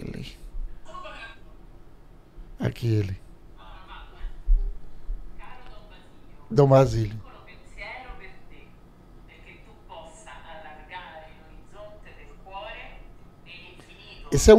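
A recorded voice plays faintly from a phone.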